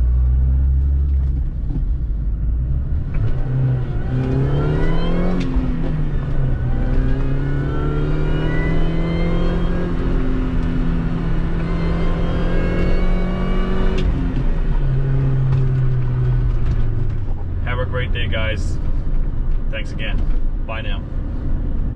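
Tyres roll steadily on the road.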